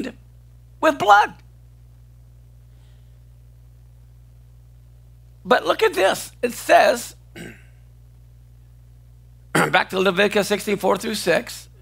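An older man speaks calmly into a close microphone, in short bursts with pauses.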